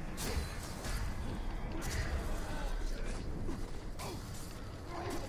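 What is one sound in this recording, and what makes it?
Heavy blows thud against bodies.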